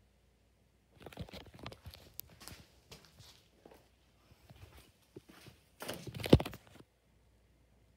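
Cardboard boxes knock and scrape as they are moved.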